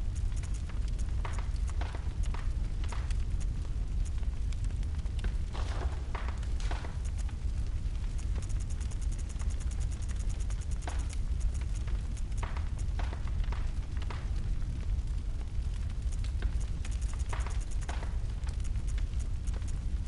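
Soft menu clicks tick as a selection cursor moves through a list.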